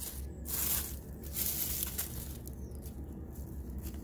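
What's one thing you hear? Dry leaves rustle as a stick is picked up from the ground.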